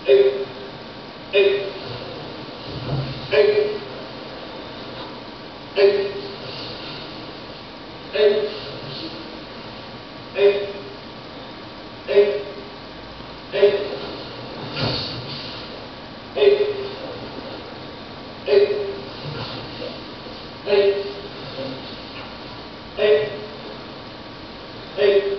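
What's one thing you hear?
Several men shout sharply together in short bursts, echoing in a room.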